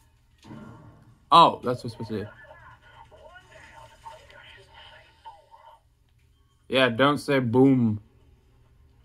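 Game sounds play from a television loudspeaker.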